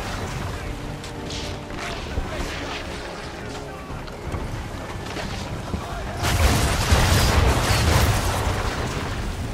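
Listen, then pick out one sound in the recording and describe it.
Cannons fire with loud booming blasts.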